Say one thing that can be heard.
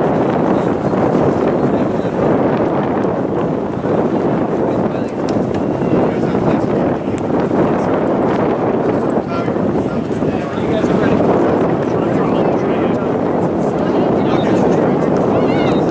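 Spectators call out and chatter from the sideline at a distance.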